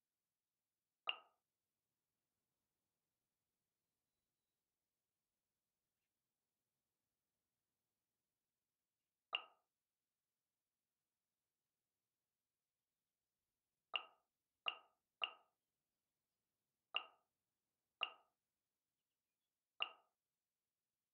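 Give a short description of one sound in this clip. Short, soft menu chimes sound one at a time as selections are made.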